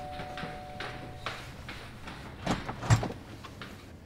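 Footsteps walk across a floor.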